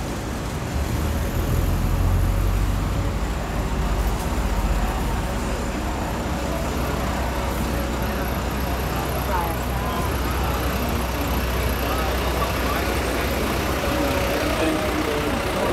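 A bus engine rumbles low nearby.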